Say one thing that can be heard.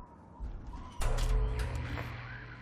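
An electrical switch clunks on.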